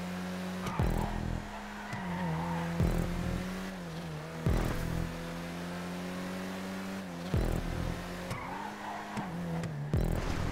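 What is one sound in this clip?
Tyres squeal briefly through the bends.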